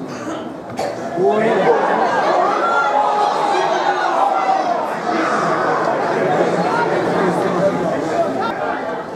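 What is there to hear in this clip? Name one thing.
A small crowd cheers and shouts outdoors.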